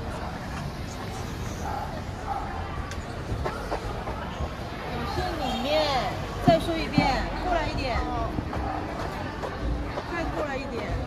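A crowd of people chatters nearby outdoors on a busy street.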